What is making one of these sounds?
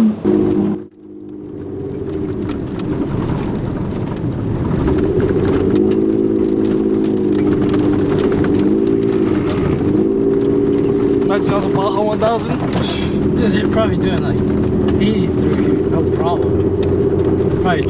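Tyres rumble and crunch over a dirt road.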